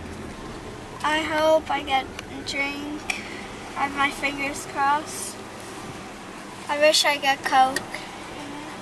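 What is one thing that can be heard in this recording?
A young girl sings brightly close by.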